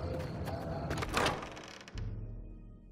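A heavy wooden door creaks open.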